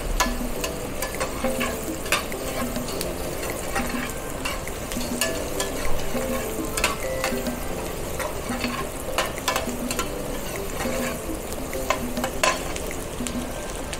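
Vegetables sizzle steadily in a hot pan.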